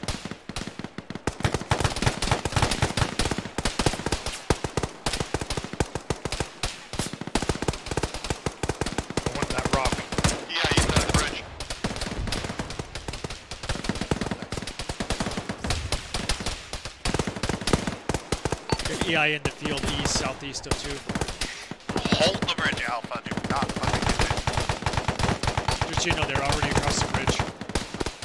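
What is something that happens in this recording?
Rifles fire in rapid bursts nearby.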